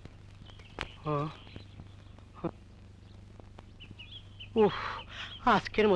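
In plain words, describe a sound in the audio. A middle-aged man speaks in a worried voice, close by.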